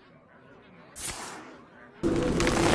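A card game plays a sharp whooshing sound effect as a card is played.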